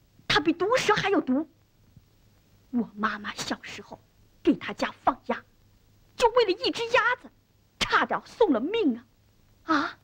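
A young boy speaks with animation, close by.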